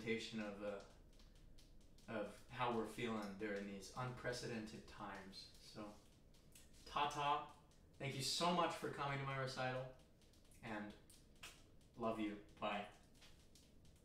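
A young man talks with animation, close by in a small echoing room.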